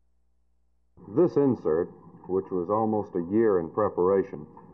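A young man speaks calmly into a clip-on microphone.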